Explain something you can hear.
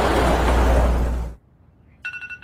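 A car drives past close by with a loud whoosh.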